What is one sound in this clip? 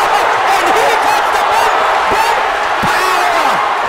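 Gloved punches thud against a boxer's body.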